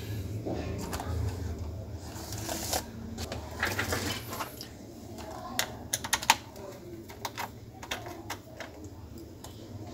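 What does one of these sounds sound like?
Plastic laptop keys click and tap under fingers.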